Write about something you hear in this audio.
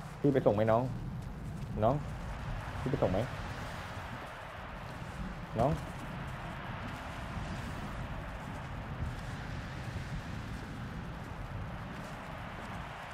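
Footsteps crunch on snowy ground.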